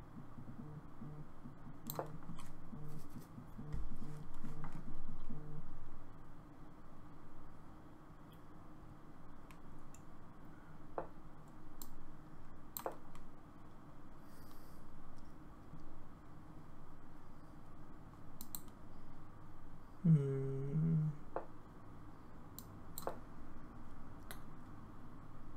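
Chess pieces click as they are moved.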